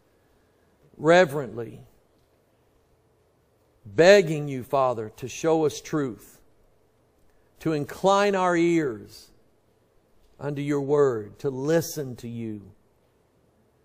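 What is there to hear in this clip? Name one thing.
A middle-aged man speaks slowly and earnestly into a microphone, with pauses between phrases.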